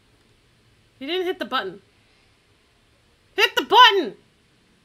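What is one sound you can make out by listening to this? A young woman speaks in short, lively bursts into a close microphone.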